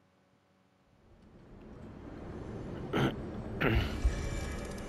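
A magical shimmer swells and rings out.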